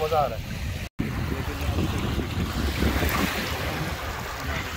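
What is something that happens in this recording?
Small waves lap against a stony shore.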